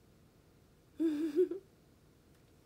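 A young woman lets out a short vocal sound close by.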